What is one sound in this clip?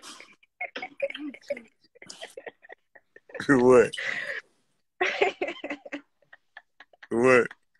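A young woman laughs softly through an online call.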